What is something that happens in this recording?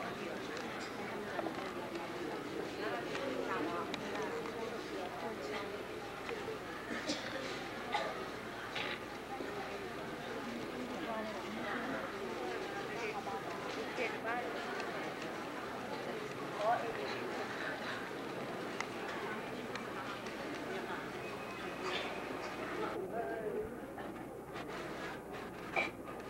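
A large crowd of men and women murmurs and chatters in a big echoing hall.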